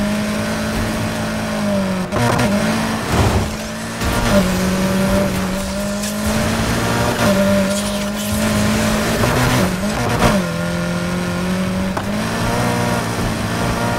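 A racing car engine roars at high revs, dropping in pitch with each gear change.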